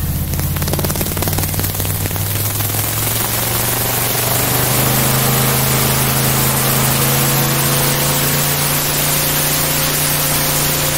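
An airboat's engine and propeller roar loudly and steadily, rising slightly in pitch.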